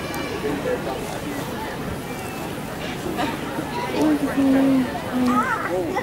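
A crowd of men, women and children chatters all around outdoors.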